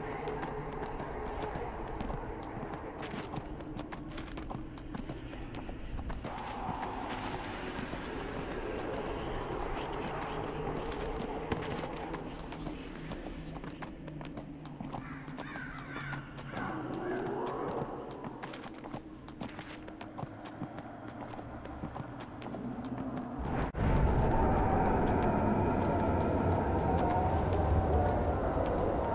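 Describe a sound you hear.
Hooves gallop quickly over hard ground.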